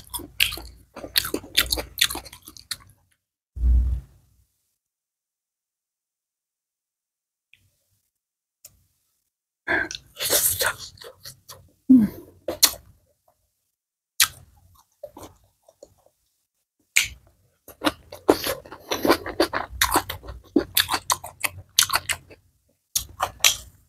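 A young woman chews crunchy food loudly, close to a microphone.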